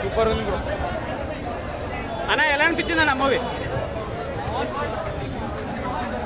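A crowd of men chatters and calls out all around outdoors.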